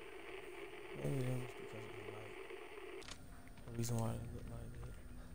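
A young man talks.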